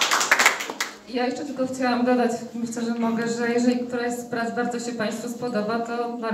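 A young woman sings into a microphone, heard through loudspeakers.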